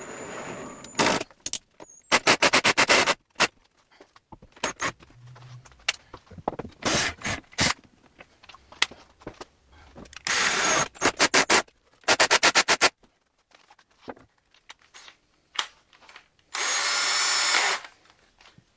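Objects clatter and rattle as a man rummages through them.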